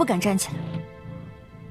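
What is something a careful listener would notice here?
A young woman speaks softly and respectfully nearby.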